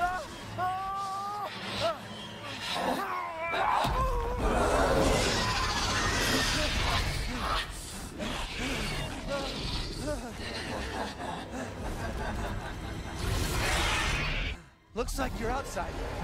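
A monstrous creature shrieks and screeches loudly.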